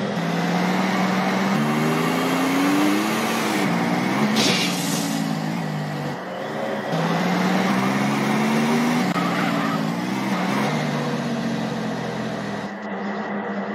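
A car engine revs up and down as a car drives.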